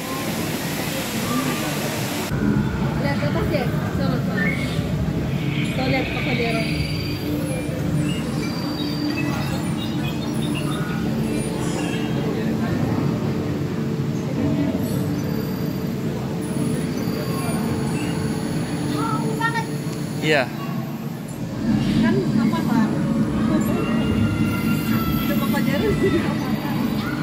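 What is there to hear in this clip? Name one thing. A crowd of people chatters nearby, outdoors.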